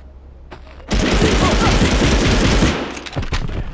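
A rifle fires a long, rapid burst.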